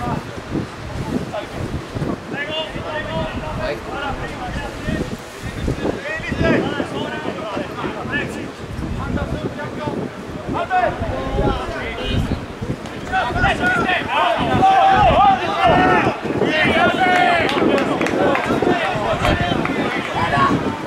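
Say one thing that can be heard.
Spectators close by shout and call out loudly outdoors.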